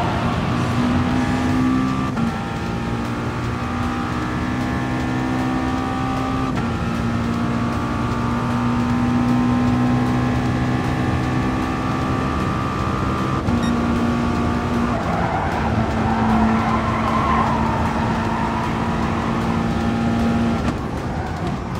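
A racing car engine roars at high revs, climbing in pitch and dropping sharply with each gear change.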